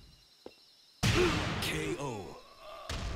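A heavy final blow lands with a loud crash.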